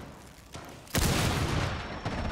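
A breaching charge blasts through a wall with a loud boom.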